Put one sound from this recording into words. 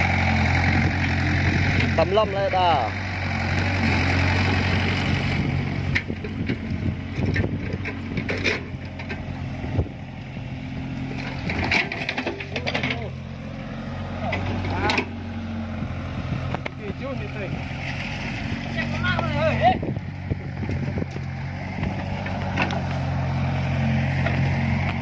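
A small engine hums steadily close by.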